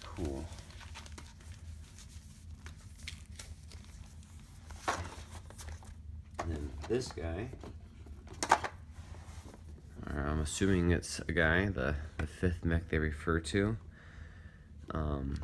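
Cardboard and plastic pieces rustle and knock as they are lifted from a box.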